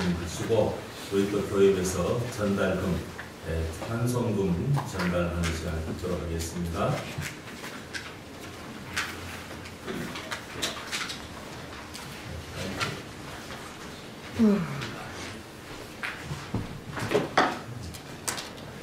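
An older man speaks calmly through a microphone in an echoing hall.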